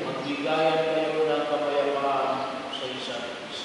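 A man chants in a large echoing hall.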